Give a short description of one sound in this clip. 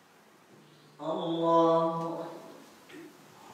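A man chants a long call loudly in an echoing hall.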